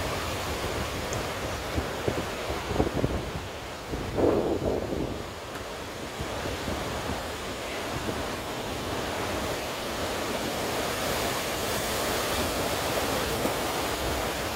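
Wind blows hard into the microphone.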